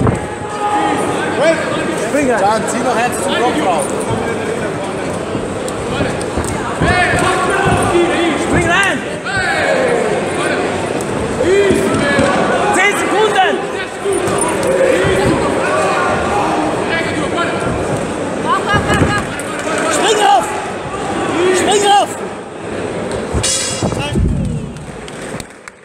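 A crowd shouts and cheers loudly in a large echoing hall.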